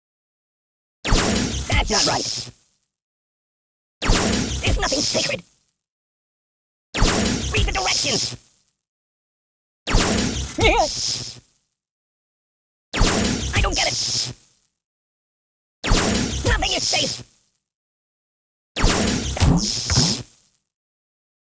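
Electric zaps crackle in short bursts, again and again.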